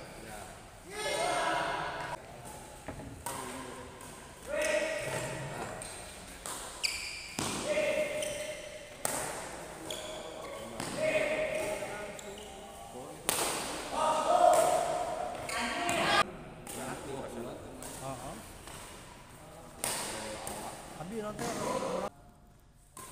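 Young men shout and call out during play in an echoing hall.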